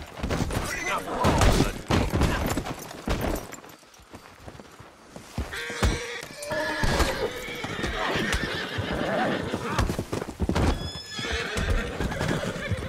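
Horses' hooves thud and clatter as they gallop.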